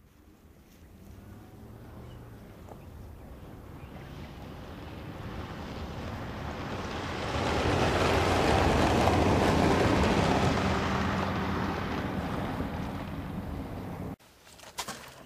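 A car drives past, its engine swelling and then fading.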